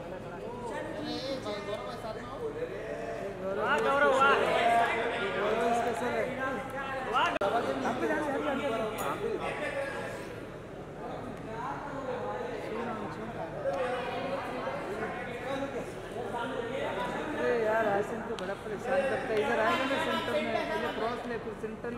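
A crowd of men call out and chatter loudly nearby.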